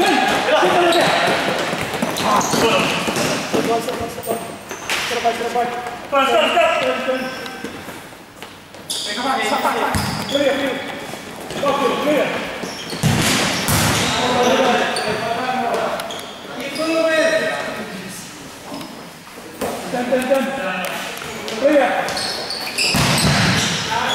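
A ball is kicked with sharp thuds.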